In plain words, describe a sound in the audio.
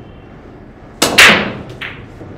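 A cue stick sharply strikes a billiard ball.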